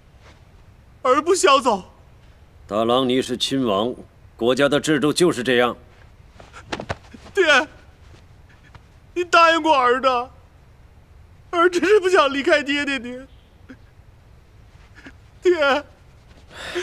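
A young man pleads tearfully, his voice breaking with sobs.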